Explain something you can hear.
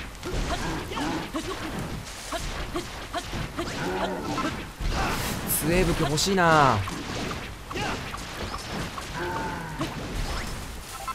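Hammer blows thud against monsters in quick bursts.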